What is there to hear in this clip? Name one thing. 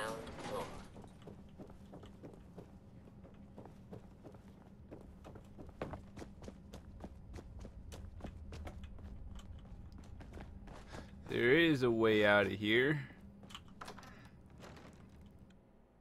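Footsteps crunch over debris.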